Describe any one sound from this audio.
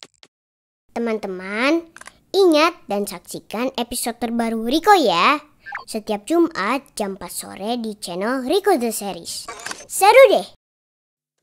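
A young boy speaks cheerfully and with animation, close up.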